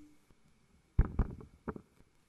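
A microphone thumps as a man adjusts it.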